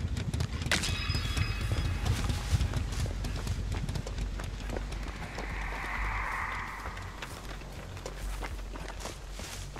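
Footsteps rustle quickly through tall dry corn stalks.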